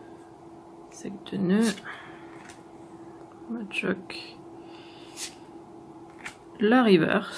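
Playing cards slide and tap against each other.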